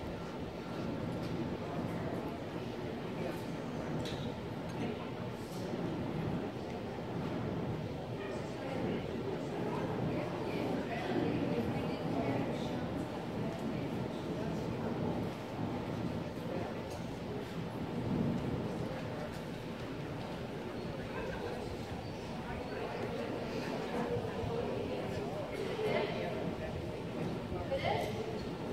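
A few adults chat quietly in the distance in a large echoing hall.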